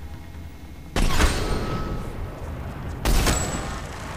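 A sniper rifle fires loud, sharp shots.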